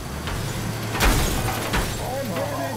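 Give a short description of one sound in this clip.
A car crashes with a loud bang.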